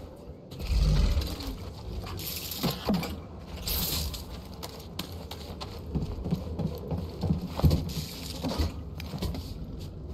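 Footsteps crunch over loose debris on a hard floor.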